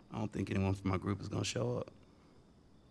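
A man speaks quietly and calmly.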